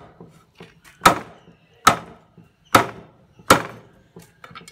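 A cleaver chops through meat onto a thick wooden chopping block.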